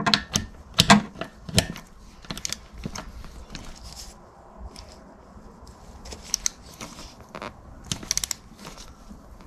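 A metal rod clicks and clanks against metal parts.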